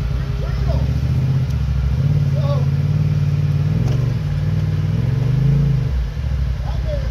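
An off-road vehicle's engine rumbles and revs as it climbs over rocks.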